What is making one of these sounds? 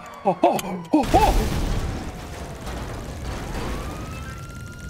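A car explodes with a loud, roaring blast.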